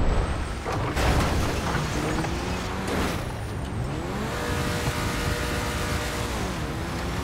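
A car engine revs loudly, its pitch rising and falling.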